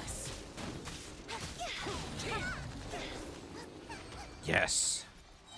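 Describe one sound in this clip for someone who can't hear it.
Magical blasts whoosh and crackle in a game battle.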